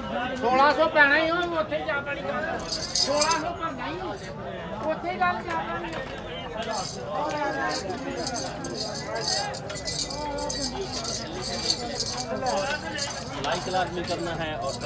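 Men talk loudly close by.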